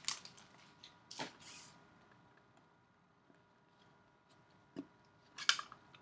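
Trading cards rustle softly as they are shuffled.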